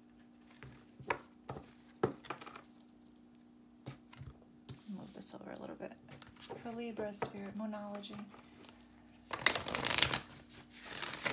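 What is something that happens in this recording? Cards rustle and slap as they are handled and laid down.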